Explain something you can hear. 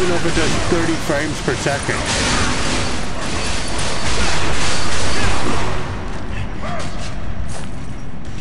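Spell blasts and clashing battle sound effects play loudly.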